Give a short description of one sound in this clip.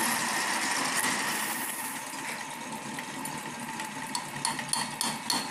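A metal lathe whirs steadily with a high ringing whine.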